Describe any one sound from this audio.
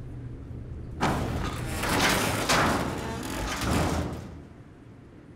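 Heavy metal doors grind and scrape as they are forced open.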